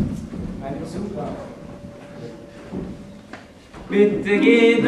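A young performer speaks in a large hall.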